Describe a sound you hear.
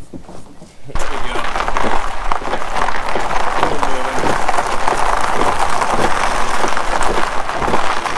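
A car rolls slowly and its tyres crunch over gravel.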